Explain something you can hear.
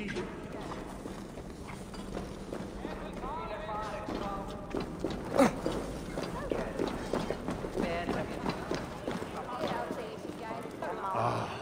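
Footsteps crunch on the ground as someone walks.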